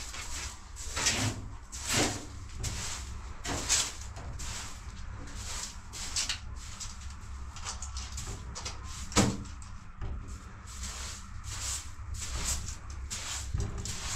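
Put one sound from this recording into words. A broom sweeps across a floor with repeated brushing strokes.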